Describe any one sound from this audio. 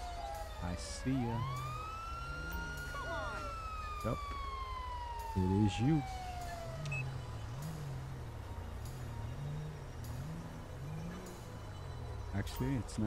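A police siren wails in a rising and falling pattern.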